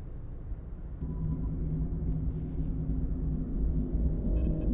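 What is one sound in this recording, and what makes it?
A spaceship hums with a deep, steady drone.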